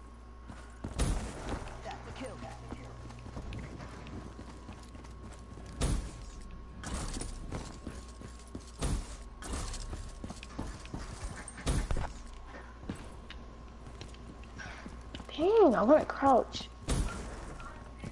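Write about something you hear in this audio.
Gunshots crack in short, sharp bursts.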